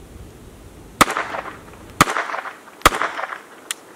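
A handgun fires several sharp shots that echo outdoors.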